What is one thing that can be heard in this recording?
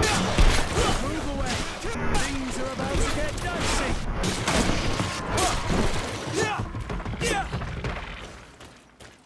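Creatures snarl and growl in a fight.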